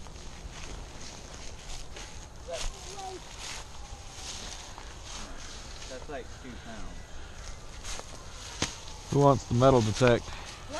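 Footsteps crunch through dry fallen leaves.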